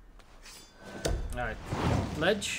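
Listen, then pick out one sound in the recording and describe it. A dagger thuds into a wooden table.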